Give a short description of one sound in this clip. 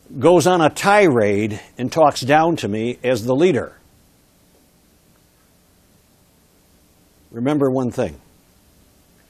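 An older man lectures with animation through a clip-on microphone.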